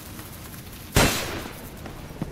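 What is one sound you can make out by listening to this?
A single gunshot cracks loudly.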